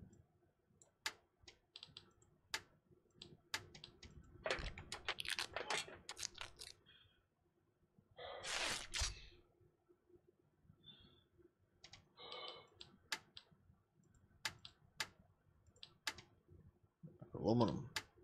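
Short game menu clicks sound as tabs are switched.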